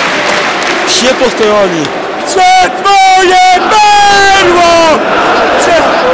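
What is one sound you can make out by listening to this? A man in the crowd shouts close by.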